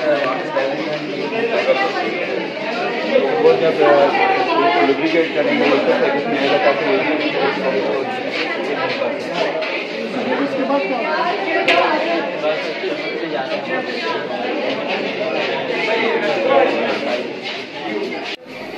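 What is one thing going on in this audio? Several young people chatter around in a busy, echoing room.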